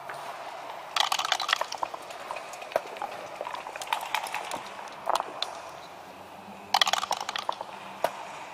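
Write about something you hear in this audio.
Dice rattle and clatter onto a wooden board.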